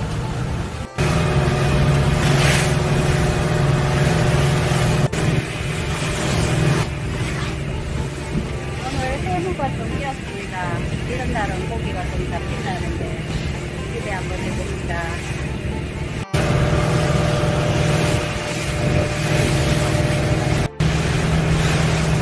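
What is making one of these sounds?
Water rushes and splashes in the boat's wake.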